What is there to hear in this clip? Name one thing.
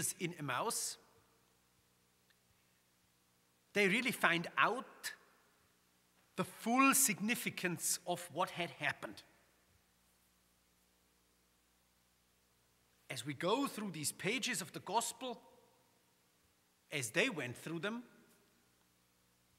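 A man speaks calmly through a microphone in an echoing hall, pausing between phrases.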